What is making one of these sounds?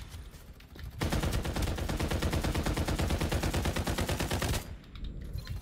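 Rapid gunfire rattles in bursts.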